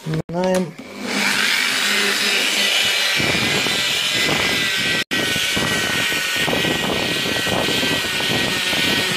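A rotary polisher whirs steadily against a panel.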